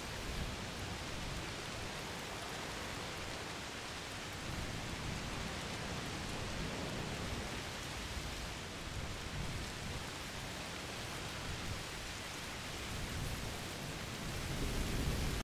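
Steady rain and wind hiss all around outdoors.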